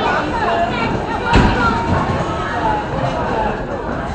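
A boy throws a bowling ball that thuds onto the lane.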